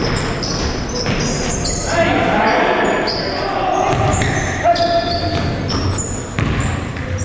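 Sneakers squeak sharply on a hard court in a large echoing hall.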